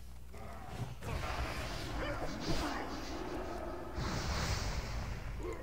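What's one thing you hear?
A sword swings and strikes with sharp metallic hits.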